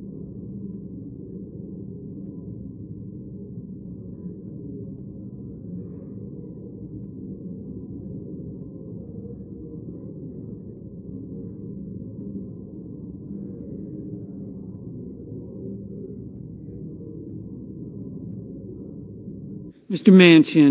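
A crowd of people murmurs quietly in a large room.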